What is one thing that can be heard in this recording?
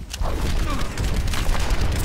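An energy beam hums and crackles.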